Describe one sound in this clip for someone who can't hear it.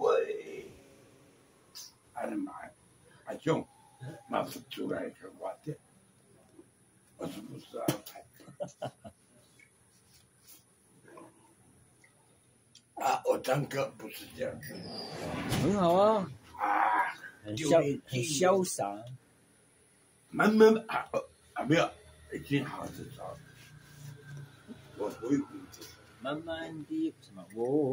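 A middle-aged man talks loudly and animatedly close by.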